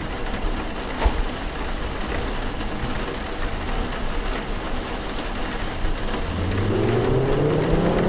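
A television hisses with static.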